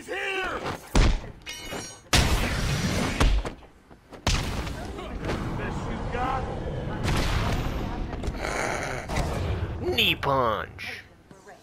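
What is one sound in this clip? Heavy punches thud and smack in a brawl.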